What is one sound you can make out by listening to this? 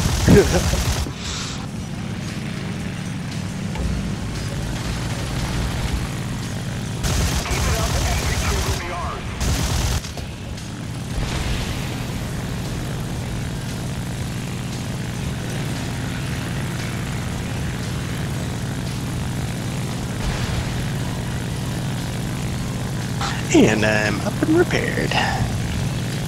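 A piston aircraft engine drones.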